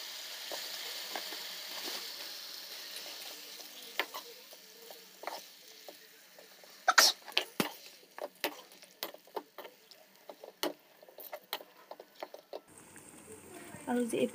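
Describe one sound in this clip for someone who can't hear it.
Fish simmers and sizzles gently in a pan of sauce.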